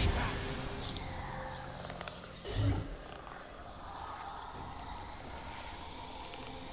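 Video game fighting effects clash and whoosh.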